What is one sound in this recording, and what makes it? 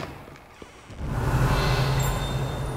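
Sparks crackle and fizz from a magic spell.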